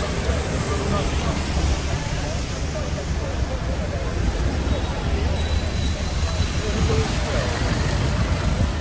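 Traffic hums along a busy street outdoors.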